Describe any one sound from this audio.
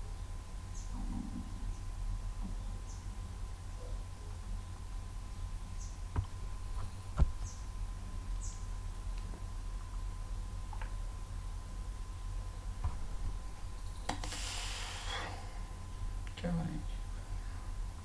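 A man speaks briefly and quietly into a nearby microphone.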